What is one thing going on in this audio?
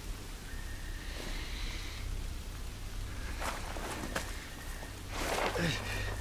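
Someone crawls through dry leaves, rustling them.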